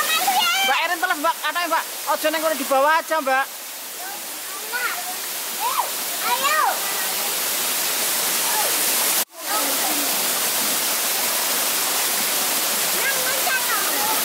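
A stream rushes and splashes over rocks outdoors.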